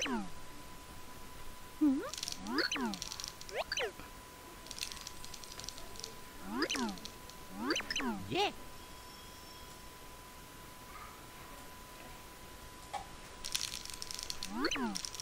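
Short swooping electronic chirps sound now and then.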